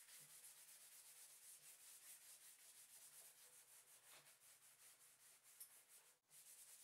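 Sandpaper rubs quickly back and forth over wood.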